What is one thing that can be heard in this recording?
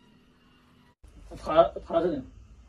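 A young man speaks excitedly nearby.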